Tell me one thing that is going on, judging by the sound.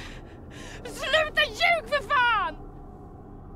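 A girl speaks in a high, strained voice close by.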